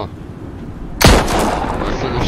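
A gunshot cracks sharply.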